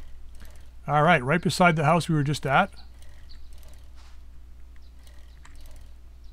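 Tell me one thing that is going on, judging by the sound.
A bicycle rolls along over rough ground.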